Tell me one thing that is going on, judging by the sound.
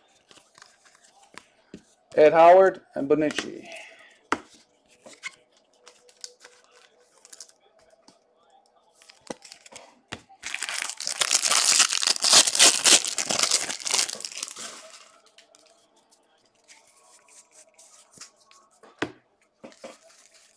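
Trading cards flick and slide against each other.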